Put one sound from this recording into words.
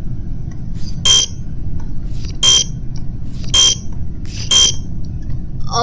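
A card reader buzzes sharply with an error tone, several times.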